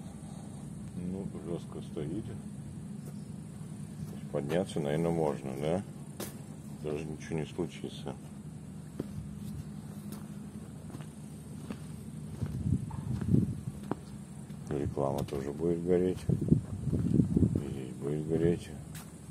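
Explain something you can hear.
An elderly man speaks calmly close to the microphone.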